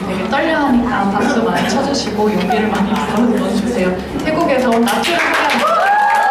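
An audience laughs and chatters nearby.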